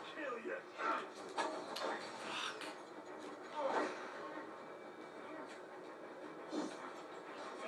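Combat sound effects from a video game play through a television speaker.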